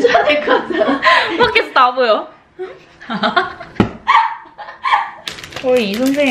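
A young woman laughs loudly close by.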